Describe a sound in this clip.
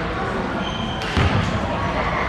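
A basketball is caught with a slap.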